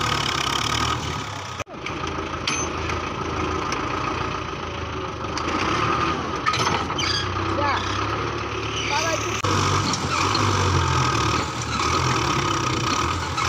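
A tractor engine chugs steadily close by.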